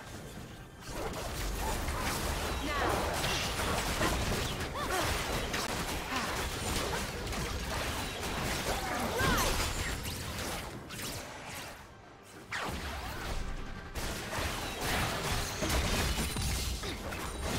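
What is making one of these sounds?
Magic spells whoosh and burst during a fight between game characters.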